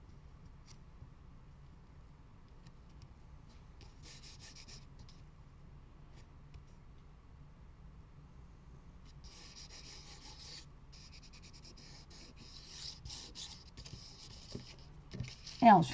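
Fingers rub and smooth paper flat with a soft scuffing.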